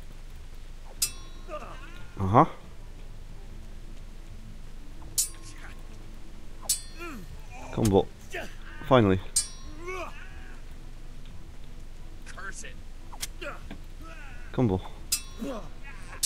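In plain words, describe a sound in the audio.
Steel swords clang together sharply.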